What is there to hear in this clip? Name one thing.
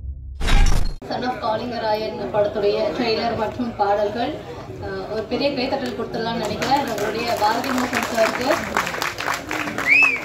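A woman speaks steadily into a microphone, heard through loudspeakers in a large hall.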